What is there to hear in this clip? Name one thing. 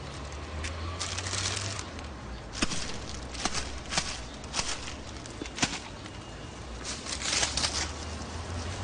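A plastic bag crinkles and rustles.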